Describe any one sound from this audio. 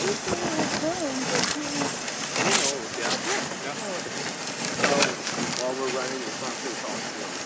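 Dogs' paws patter on packed snow.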